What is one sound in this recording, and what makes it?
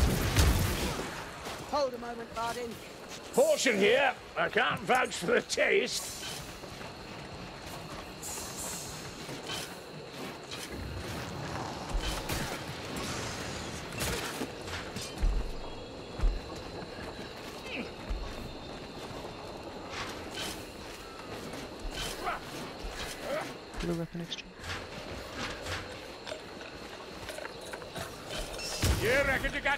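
Melee weapons clash and thud in a fight.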